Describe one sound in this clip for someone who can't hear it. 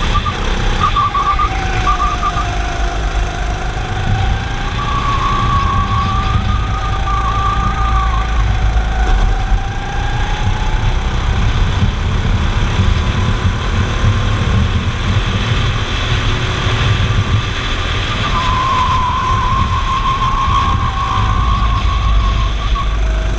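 Tyres squeal through tight corners.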